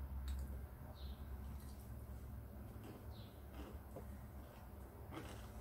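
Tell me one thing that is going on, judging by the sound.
A man chews noisily close to a microphone.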